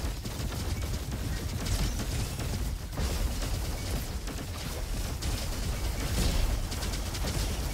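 Electric zaps crackle on impact.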